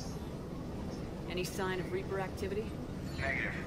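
A woman asks a question calmly.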